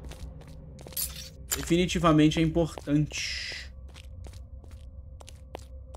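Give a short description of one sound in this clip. Footsteps patter on a stone floor.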